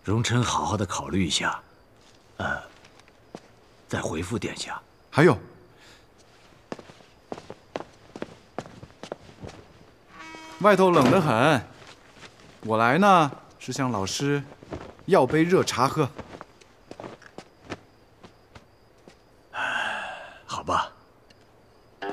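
A middle-aged man speaks calmly and warmly nearby.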